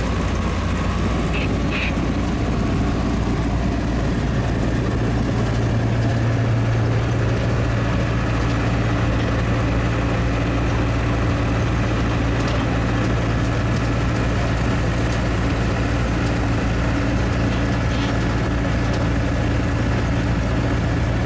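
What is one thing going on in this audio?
Wood chips rattle and hiss as they slide down a conveyor.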